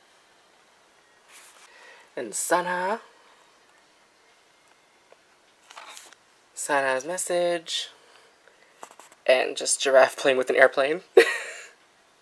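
Paper pages rustle and flip as a book's pages are turned.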